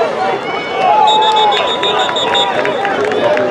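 A referee's whistle blows in short bursts.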